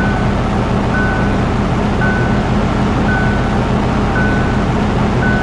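A reversing alarm beeps at an even pace.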